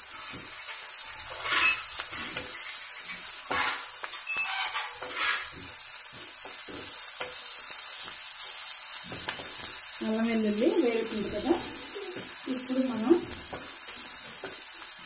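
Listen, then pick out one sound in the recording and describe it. A spatula scrapes and clatters against a pan.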